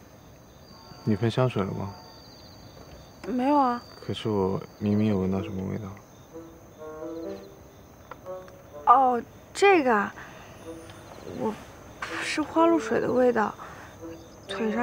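A young woman speaks softly and calmly up close.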